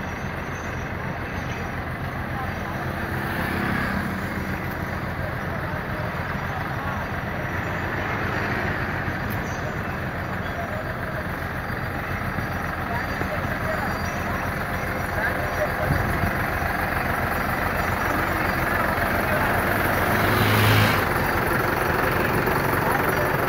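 A tractor engine chugs steadily nearby.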